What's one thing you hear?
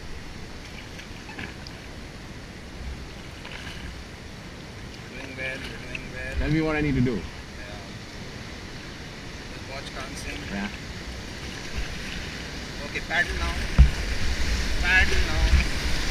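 A river rushes steadily, growing louder as whitewater rapids draw near.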